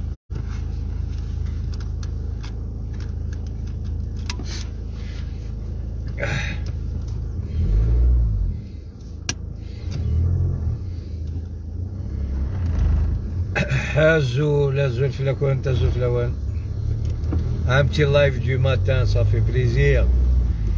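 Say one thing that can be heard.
A car's engine hums low inside the cabin.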